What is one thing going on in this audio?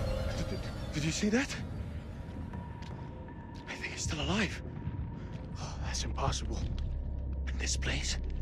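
A man talks urgently and anxiously.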